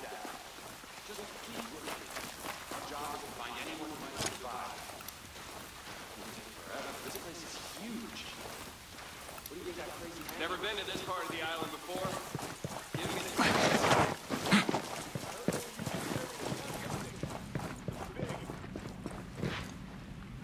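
Footsteps crunch on damp ground and then on a hard floor.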